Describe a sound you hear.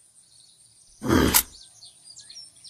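A rifle is drawn with a sharp metallic clatter.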